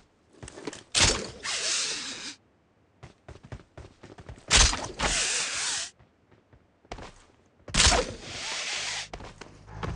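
A figure vaults and climbs with a rushing whoosh.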